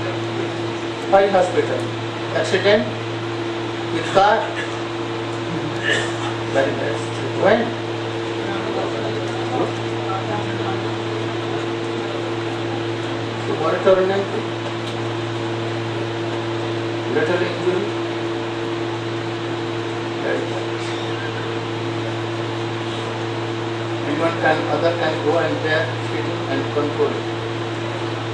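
An elderly man speaks slowly and calmly through a microphone, with long pauses.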